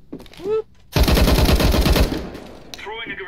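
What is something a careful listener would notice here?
A rifle fires rapid shots at close range.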